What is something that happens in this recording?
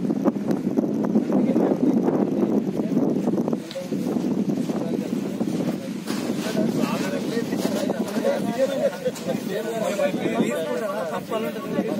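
A crowd of men talk and murmur outdoors.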